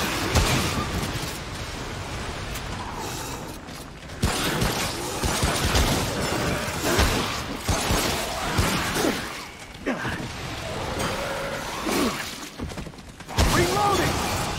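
Gunshots bang in quick bursts.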